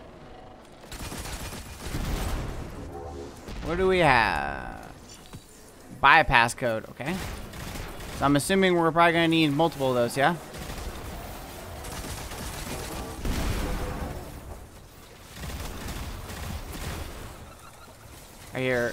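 Gunfire from a game bursts and booms.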